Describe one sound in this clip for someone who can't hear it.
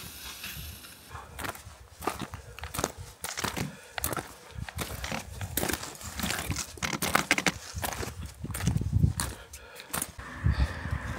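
Footsteps crunch on wet rocks.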